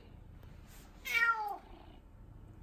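A cat meows loudly close by, its cry falling in pitch.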